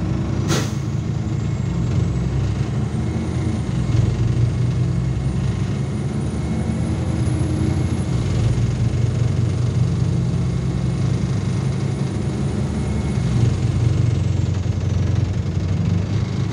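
A bus's electric motor whines, rising and falling in pitch.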